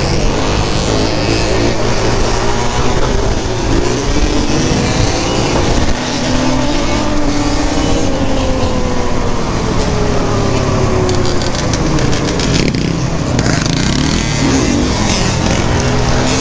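A quad bike engine roars loudly up close, revving up and down.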